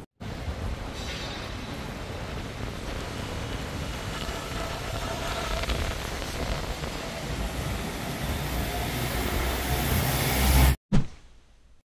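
Rain patters steadily on a wet street.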